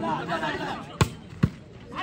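A ball is spiked with a sharp slap.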